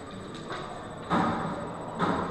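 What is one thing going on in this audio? A pool ball clicks as it is set down on a table.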